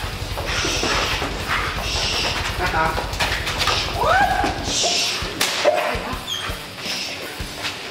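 A dog barks sharply.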